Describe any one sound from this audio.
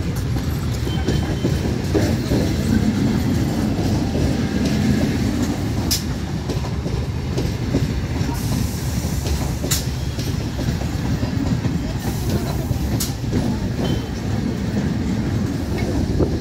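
A train rumbles and clatters steadily along the rails close by.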